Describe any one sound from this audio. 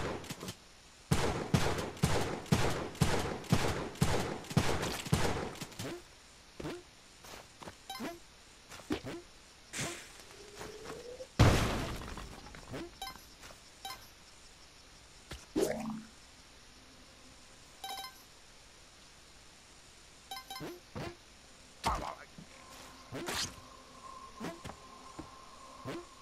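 Video game sound effects of shots, jumps and pickups play in quick bursts.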